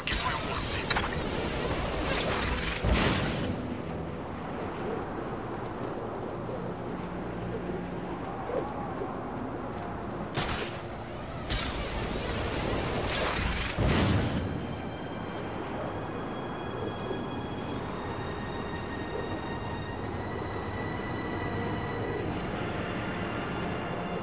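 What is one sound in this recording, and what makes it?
Wind rushes past steadily, swelling into loud gusts now and then.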